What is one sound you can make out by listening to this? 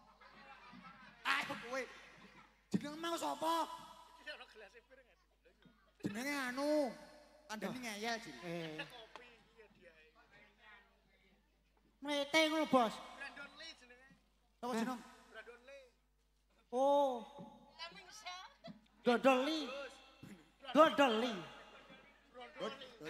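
A young man sings loudly through a microphone over a loudspeaker.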